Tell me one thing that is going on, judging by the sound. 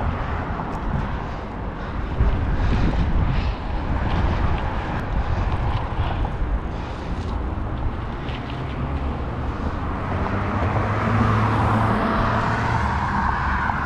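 Bicycle tyres roll and rattle over a concrete path.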